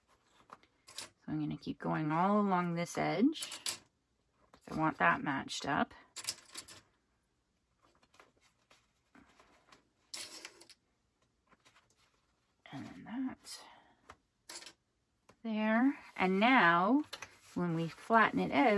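Fabric rustles softly as hands fold and pin it.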